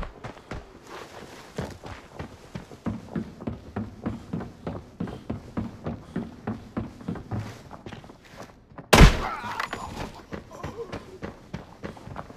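Footsteps thud quickly and evenly on a hard floor.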